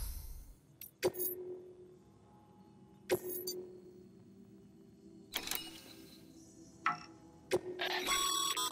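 Short electronic menu blips sound as options are selected.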